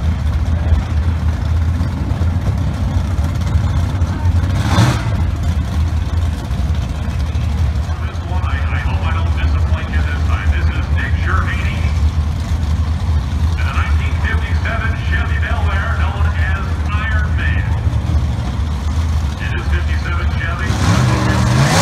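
A drag racing engine idles with a deep, steady rumble.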